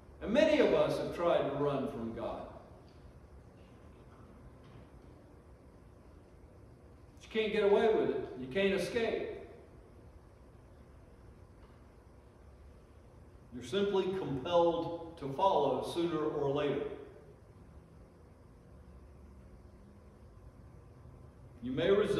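An elderly man speaks calmly into a microphone, in short phrases with long pauses.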